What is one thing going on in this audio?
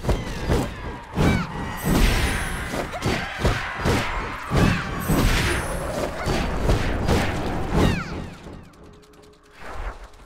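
Swords clash and strike in rapid combat blows.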